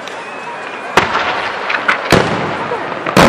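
Fireworks bang loudly overhead outdoors.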